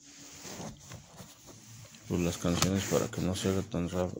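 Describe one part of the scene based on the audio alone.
A plastic disc case clicks and rattles as it is handled.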